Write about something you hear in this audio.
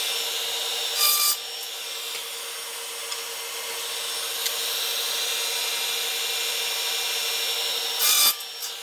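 A saw blade bites through a strip of wood in short, loud bursts.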